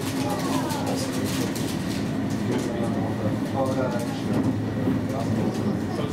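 A passing train rushes by close alongside.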